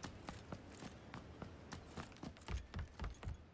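Footsteps tread quickly on a hard floor.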